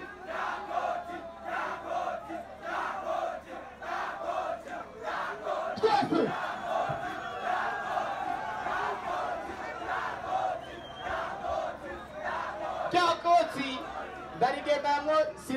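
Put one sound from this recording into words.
A large crowd cheers and sings loudly outdoors.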